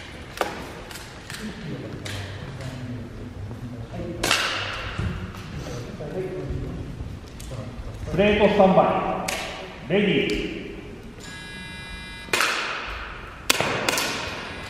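Air guns fire with sharp pops that echo through a large hall.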